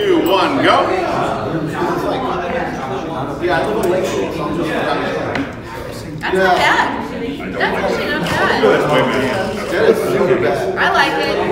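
A group of men and a young woman talk and laugh together close by.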